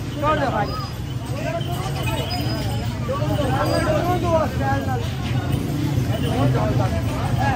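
A motorbike engine rumbles past.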